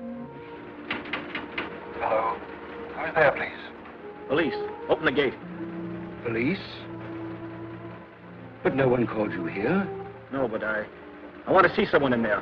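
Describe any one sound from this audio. A man speaks calmly into an intercom.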